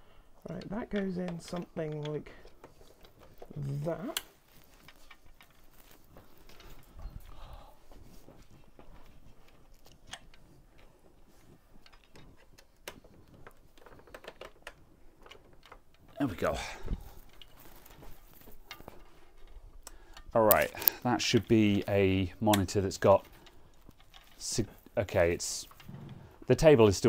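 A man handles a plastic device with clicks and rattles.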